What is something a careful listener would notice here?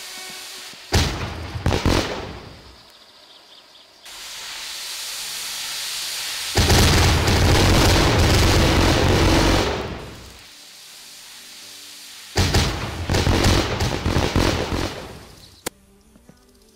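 Explosions boom and roar in loud bursts.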